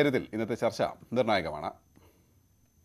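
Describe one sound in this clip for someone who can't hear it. A man speaks steadily through a microphone, as if reading out.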